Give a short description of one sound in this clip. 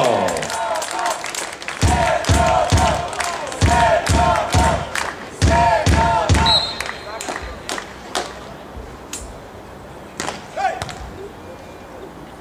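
A volleyball is hit with dull thumps.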